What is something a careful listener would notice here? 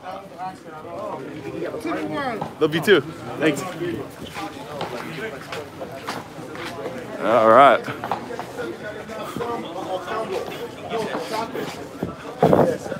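Several people talk in the background outdoors.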